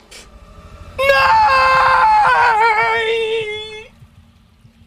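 A young man shouts out loudly in a long cry.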